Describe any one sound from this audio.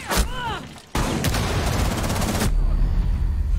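A rifle fires a rapid, loud burst.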